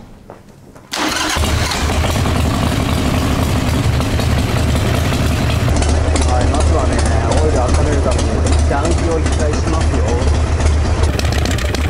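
A motorcycle engine starts and idles with a steady, deep rumble.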